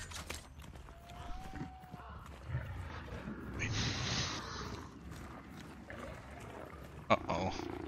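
Footsteps crunch on a dirt path.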